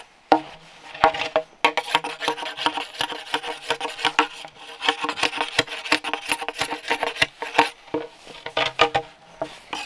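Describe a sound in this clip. A blade scrapes along a bamboo pole.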